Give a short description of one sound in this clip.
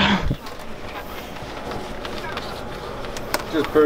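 Hands rustle and handle a plastic wrapper on a counter.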